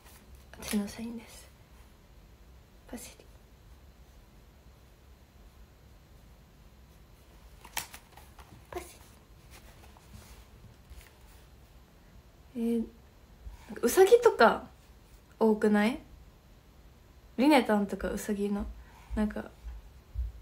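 A young woman speaks softly and calmly into a nearby microphone, in short bursts with pauses.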